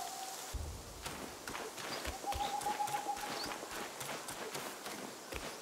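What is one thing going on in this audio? Footsteps crunch quickly over dry leaves and gravel.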